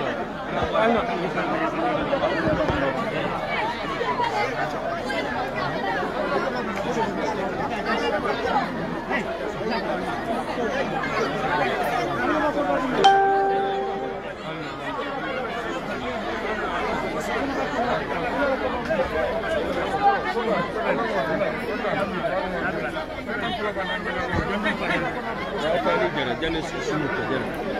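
A crowd of men and women talk and call out loudly all around, close by.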